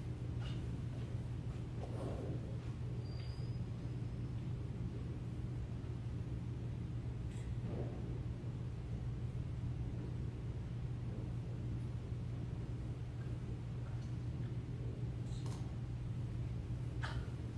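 Footsteps echo faintly in a large hall.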